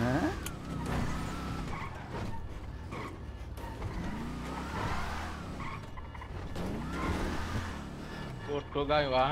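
A car engine revs up and down.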